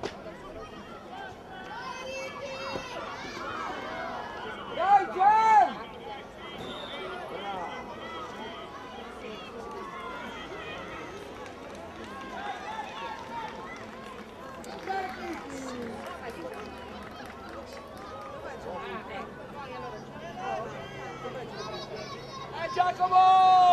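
Children shout and call out excitedly outdoors across an open field.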